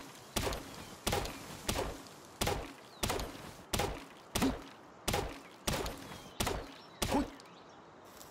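An axe chops into a tree trunk with sharp, regular thuds.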